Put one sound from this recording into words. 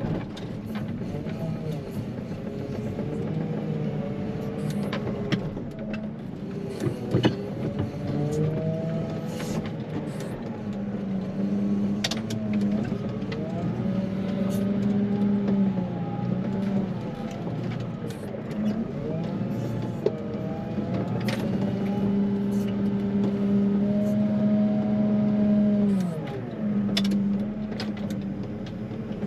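A diesel engine of a loader hums steadily and rises and falls as it works.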